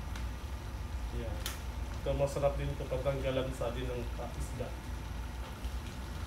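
Water pours into a hot wok.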